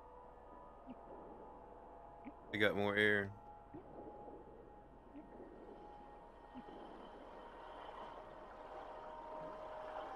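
A low, steady underwater hum drones on.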